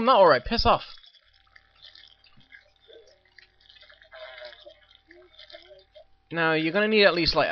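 Small quick footsteps patter on hard ground.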